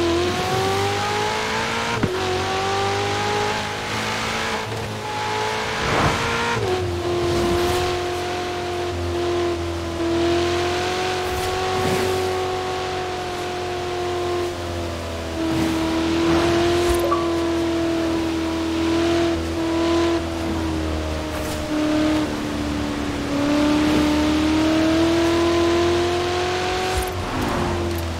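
A sports car engine roars loudly at high revs, shifting gears as it speeds along.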